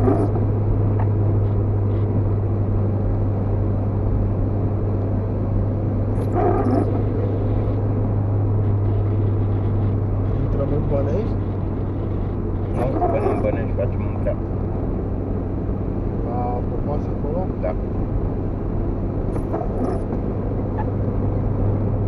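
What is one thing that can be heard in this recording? A car engine hums steadily from inside the car while it drives.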